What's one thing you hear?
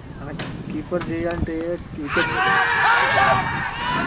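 A cricket bat knocks a ball.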